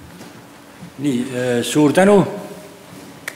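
An older man speaks briefly through a microphone.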